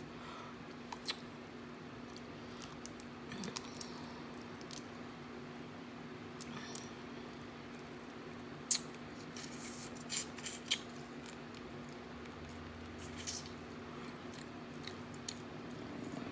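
Crawfish shells crack and snap between fingers.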